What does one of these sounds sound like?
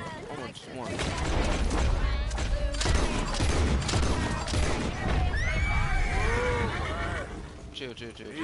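A horse-drawn wagon rumbles and rattles over a dirt track.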